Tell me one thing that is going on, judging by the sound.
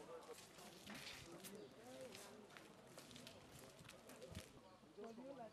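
Footsteps scuff on a paved path.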